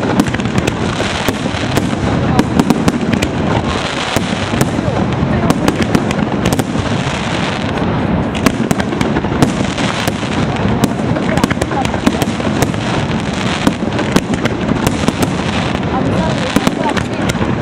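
Fireworks bang and crackle rapidly overhead.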